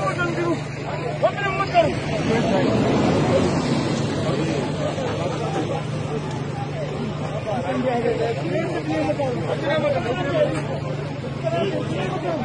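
A crowd of men and women talks and calls out at once outdoors.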